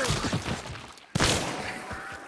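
A gunshot bangs once, loud and sharp.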